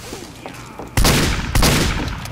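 A revolver fires loud, sharp shots.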